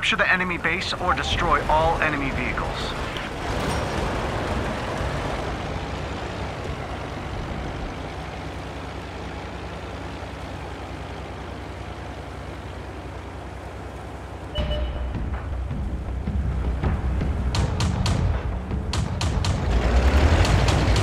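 A heavy tank engine idles with a low rumble.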